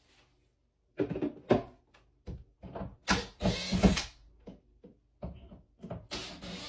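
Objects clatter and knock inside a wall cabinet.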